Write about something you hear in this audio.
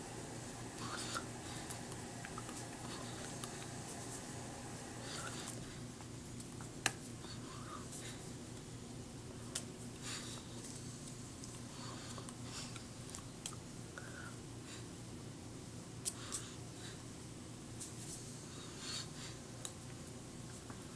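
A woman's hands tap and brush together now and then.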